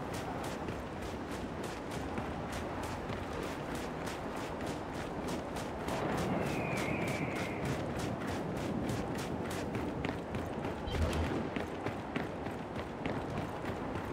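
Heavy footsteps crunch steadily on gravel.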